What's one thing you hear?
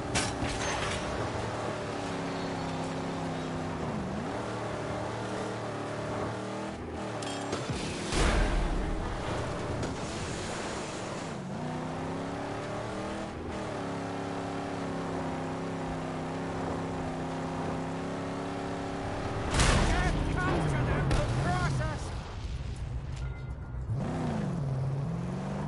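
A car engine roars steadily, rising and falling in pitch as it speeds.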